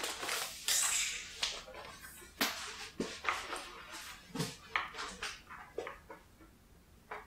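A book is set down on a table with a soft thud.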